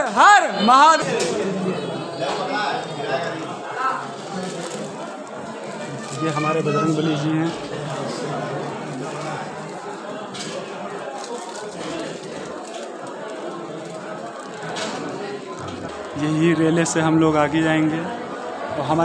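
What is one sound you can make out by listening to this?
Men and women murmur and talk quietly nearby.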